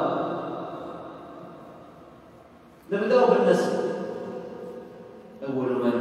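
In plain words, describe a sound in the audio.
A young man speaks with animation into a microphone in an echoing room.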